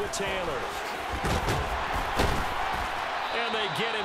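Football players collide with heavy thuds.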